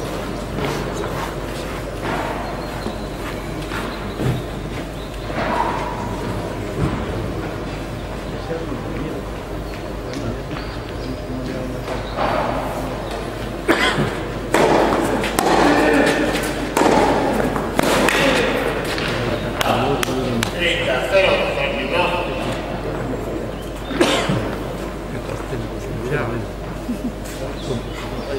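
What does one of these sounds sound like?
Tennis balls are struck with rackets in a large, echoing indoor hall.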